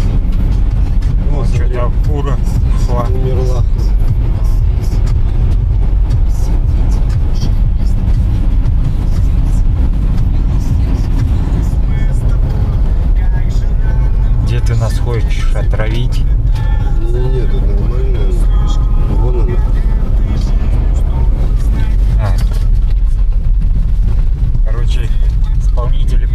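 Tyres rumble steadily on a road.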